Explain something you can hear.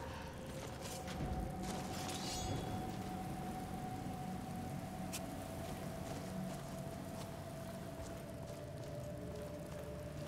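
Footsteps crunch over stone and gravel.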